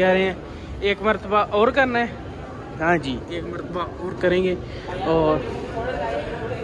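Young men talk loudly with animation nearby.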